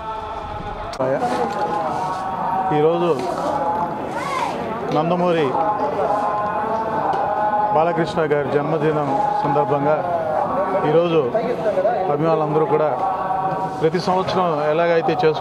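A middle-aged man speaks calmly and steadily, close to a microphone, outdoors.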